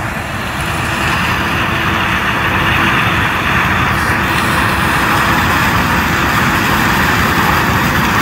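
A combine harvester's corn header chops through dry cornstalks.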